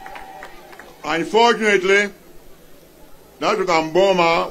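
A man speaks loudly and with force into a microphone over a loudspeaker.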